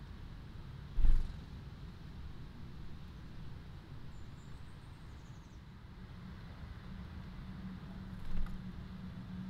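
A small bird flutters its wings close by.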